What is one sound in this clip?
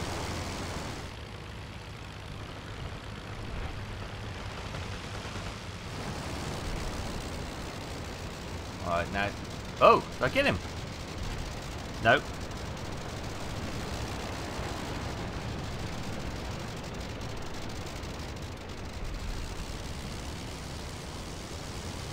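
A biplane's engine drones steadily.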